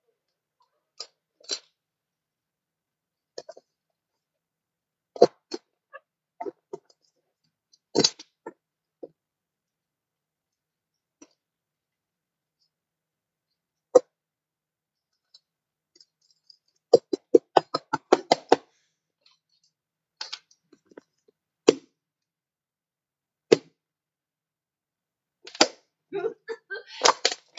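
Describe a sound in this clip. Silicone bubbles pop under fingers in quick, sharp clicks.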